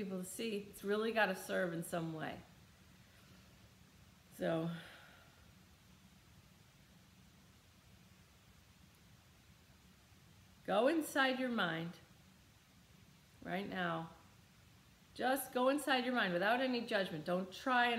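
A middle-aged woman speaks calmly and thoughtfully close by, with long pauses.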